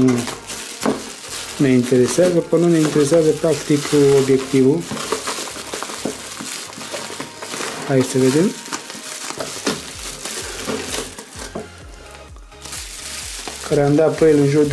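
Bubble wrap crinkles and rustles.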